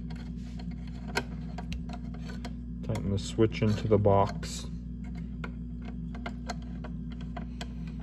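A screwdriver scrapes and clicks faintly against metal screws.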